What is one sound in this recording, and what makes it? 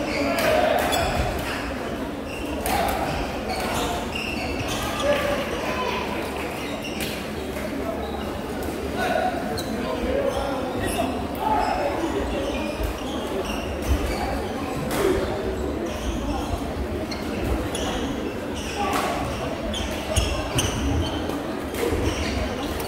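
Shuttlecocks are struck with sharp pops of rackets.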